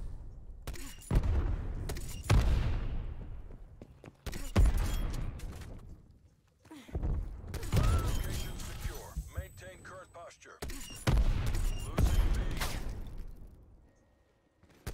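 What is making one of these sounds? Gunshots bang in loud bursts with an echoing rumble.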